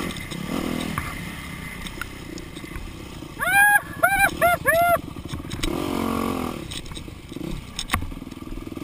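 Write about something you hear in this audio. A dirt bike engine drones up close and revs up and down.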